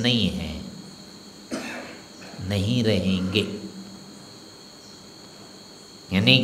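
An elderly man speaks calmly into a close microphone, with pauses.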